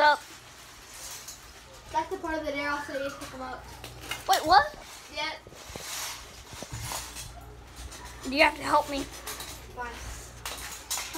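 A young boy talks close to a phone microphone, in an animated voice.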